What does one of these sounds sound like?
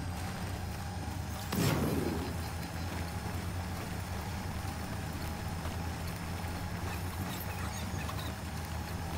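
Tyres roll over rough ground.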